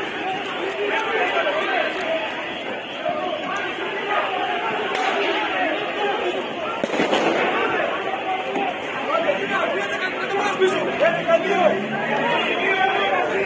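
A crowd of men shouts and yells nearby, outdoors.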